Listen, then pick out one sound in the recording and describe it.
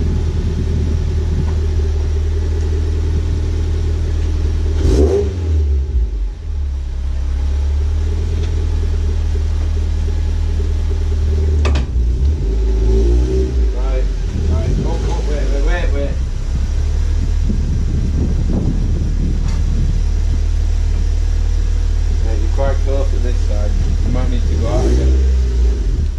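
A car engine idles with a steady low rumble.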